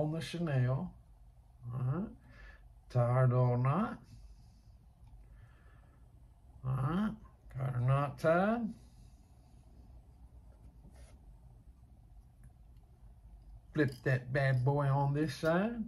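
A man talks calmly and close by, in short bursts with pauses.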